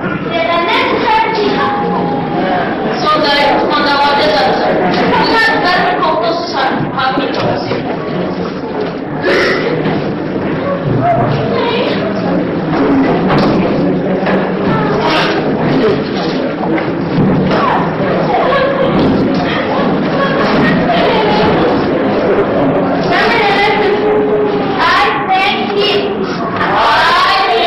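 A woman talks with animation in a hall with an echo.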